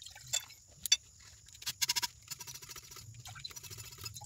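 Liquid pours and trickles into a glass beaker.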